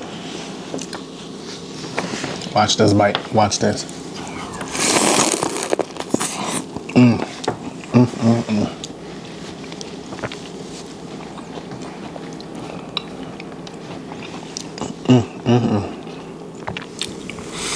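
A man bites and chews crunchy corn loudly and close up.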